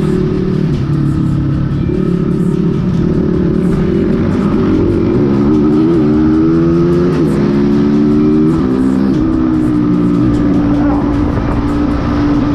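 Wind buffets loudly past the rider.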